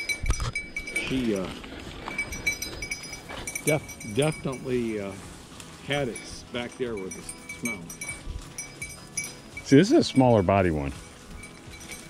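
An elderly man talks calmly nearby, outdoors.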